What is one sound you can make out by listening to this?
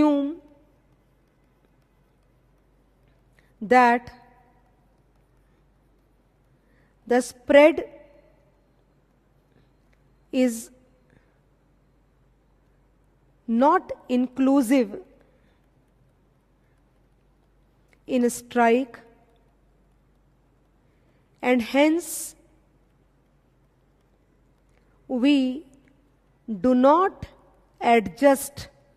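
A middle-aged woman speaks slowly and calmly into a microphone, pausing between short phrases.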